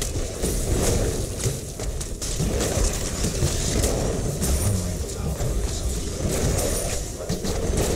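Explosions boom and crackle.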